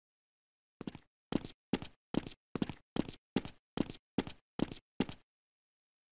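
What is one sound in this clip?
Footsteps clank on a metal ladder in a steady rhythm.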